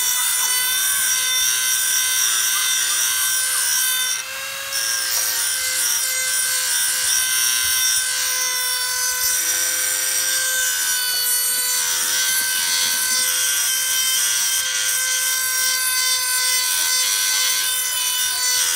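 A high-speed rotary tool whines steadily as it grinds metal.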